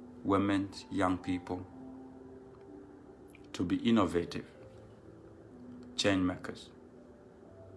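A young man speaks calmly into a nearby microphone, in short bursts with pauses.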